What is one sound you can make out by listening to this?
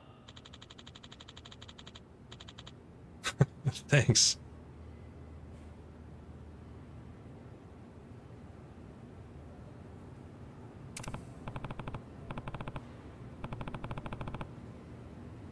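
Rapid electronic blips tick in short bursts.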